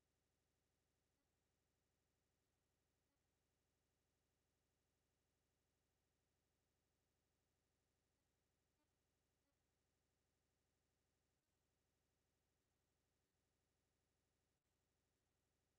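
A wall clock ticks steadily.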